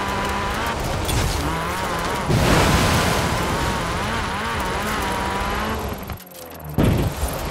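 A car engine roars at high revs.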